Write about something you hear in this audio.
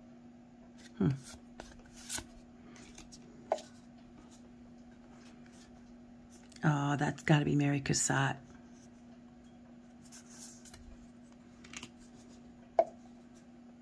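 Stiff cards slide and tap against each other.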